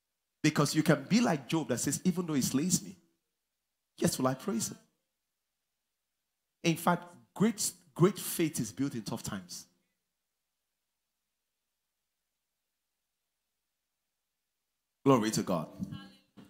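A man preaches with animation through a microphone in a large hall, pausing between phrases.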